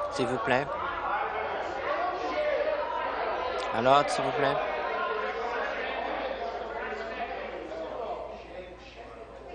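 A crowd of people talks and murmurs in a large echoing hall.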